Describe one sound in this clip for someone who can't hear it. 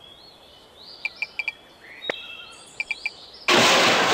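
Short game chimes and clicks ring out.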